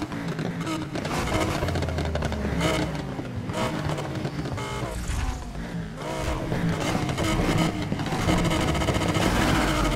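A car exhaust pops and bangs.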